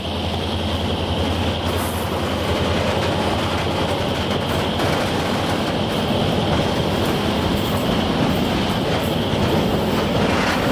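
A long freight train rumbles past close by, its wheels clattering rhythmically on the rails.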